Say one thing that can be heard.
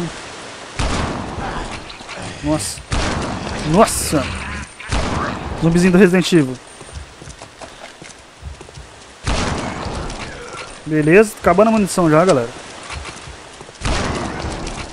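Rifle shots boom one at a time, each followed by a short echo.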